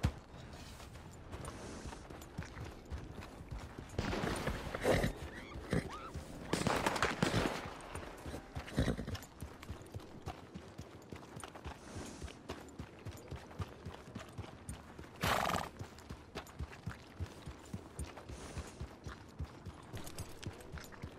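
Horse hooves clop steadily on a dirt path.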